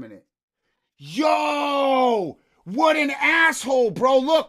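A man shouts in excitement close to a microphone.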